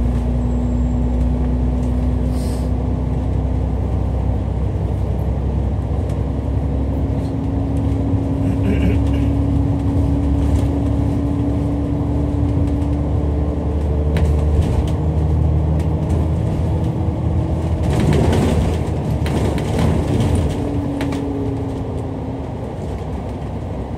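A bus engine hums and drones steadily while driving.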